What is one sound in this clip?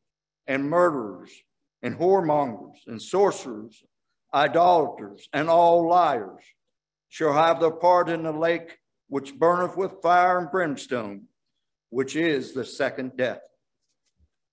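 An older man speaks calmly into a microphone, heard over an online stream.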